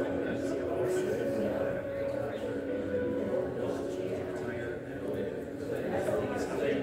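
A crowd of people murmurs in conversation indoors.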